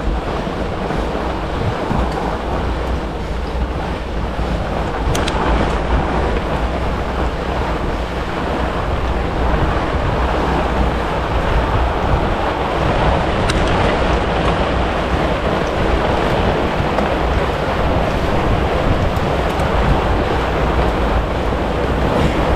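Wide bicycle tyres crunch over packed snow.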